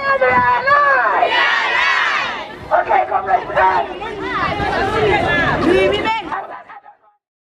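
A crowd of men and women sings and chants loudly outdoors.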